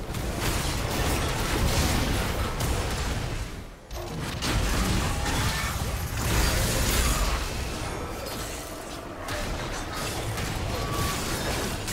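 Magical blasts and sword strikes clash in a fast-paced video game battle.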